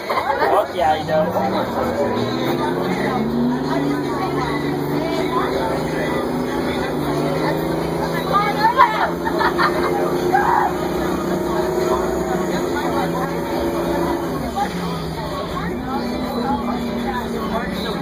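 A bus engine hums and whines, its pitch rising and falling as it shifts gears.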